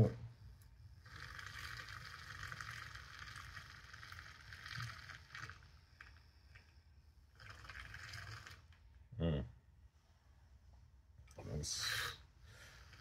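A handheld frother whirs as it whisks a drink in a glass.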